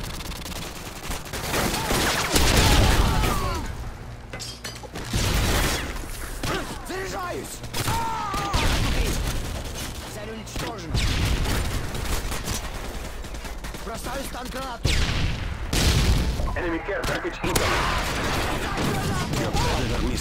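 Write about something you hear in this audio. Automatic gunfire rattles in short bursts.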